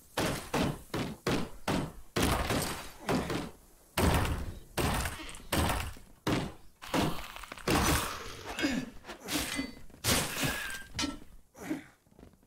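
Sharp hits and shots crack again and again in a fight.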